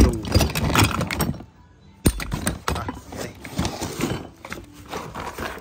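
Metal parts clatter and knock as they are handled.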